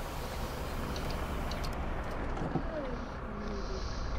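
A bus engine rumbles as the bus pulls away.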